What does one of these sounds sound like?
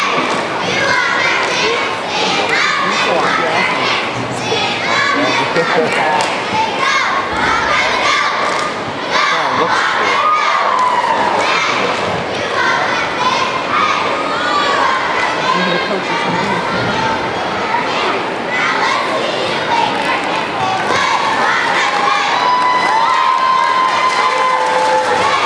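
A group of young women shout cheers together, echoing in a large hall.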